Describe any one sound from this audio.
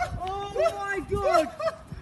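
A young man shouts excitedly nearby.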